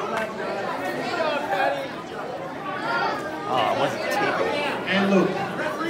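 A crowd of children and adults chatters and cheers loudly in a large echoing gym.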